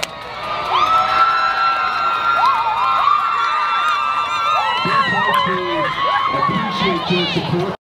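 A group of young women cheer and shout loudly outdoors.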